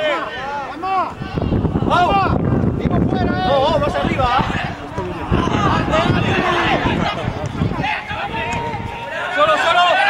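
Young men shout to each other across an open pitch.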